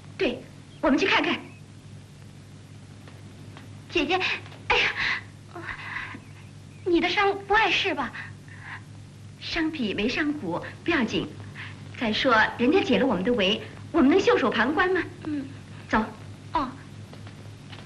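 A young woman speaks earnestly, close by.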